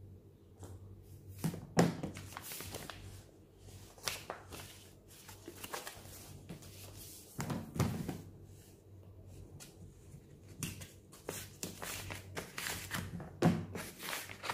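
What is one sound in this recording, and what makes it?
Paper slides and taps against a table.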